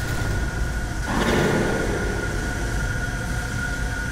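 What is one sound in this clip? A magical beam hums to life with a bright whooshing surge.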